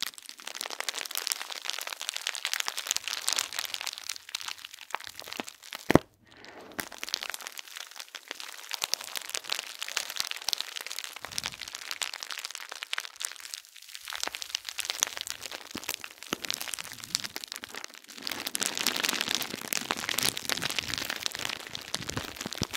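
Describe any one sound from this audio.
Fingertips scratch and tap on crinkly bubble wrap close up.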